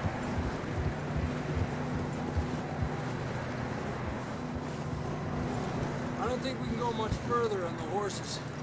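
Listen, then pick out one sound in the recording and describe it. Horses trudge heavily through deep snow.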